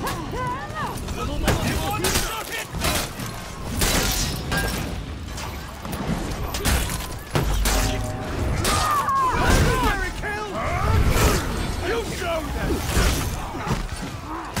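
Metal blades clash and strike repeatedly in a fight.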